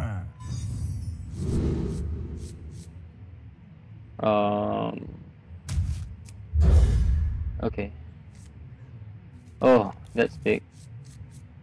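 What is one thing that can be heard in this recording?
Game sound effects chime and whoosh in short bursts.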